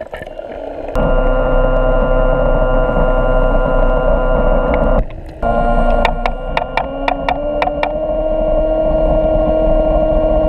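A low, muffled rumble of water fills the sound underwater.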